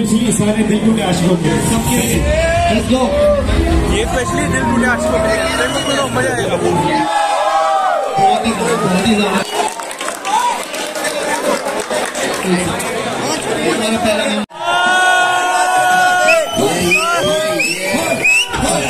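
A crowd of young people cheers and shouts loudly.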